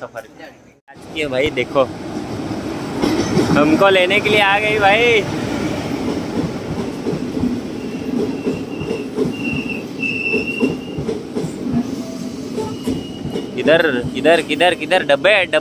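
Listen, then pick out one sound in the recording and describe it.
A train rolls past close by with a loud, steady rumble.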